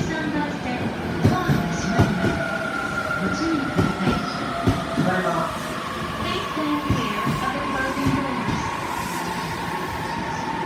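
Train brakes squeal with a long high whine.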